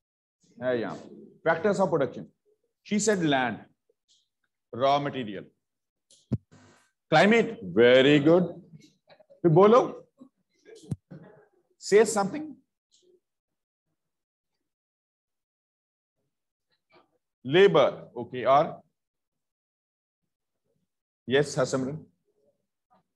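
A man speaks slowly and calmly, close to the microphone, with long pauses.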